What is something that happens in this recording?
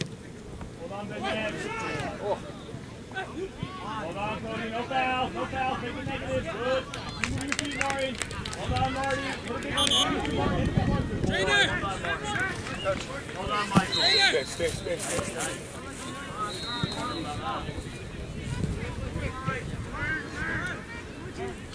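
Young players and adults shout and call out across an open field outdoors.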